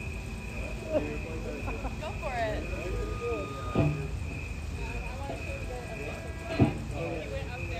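A drum is struck a few times, with pauses between hits.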